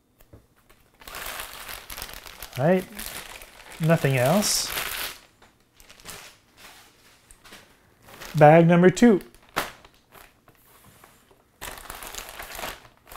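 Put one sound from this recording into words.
Plastic bags crinkle and rustle in someone's hands.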